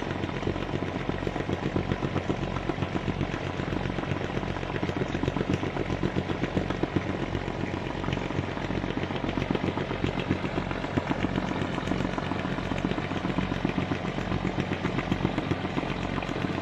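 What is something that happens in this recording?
A ship's engine drones and throbs steadily.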